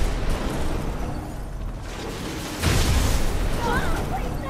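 A stone wall bursts apart and rubble crashes down.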